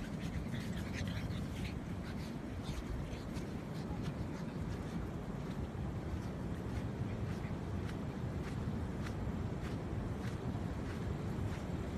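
A small dog's paws patter quickly on sand.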